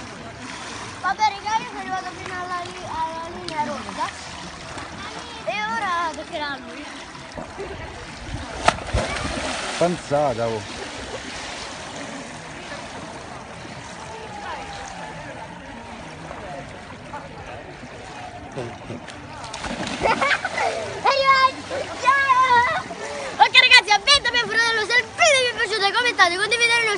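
A young boy talks and shouts excitedly close by.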